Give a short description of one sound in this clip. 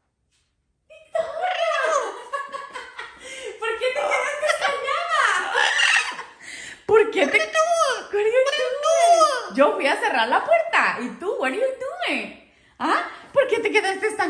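A parrot squawks, whistles and chatters loudly close by.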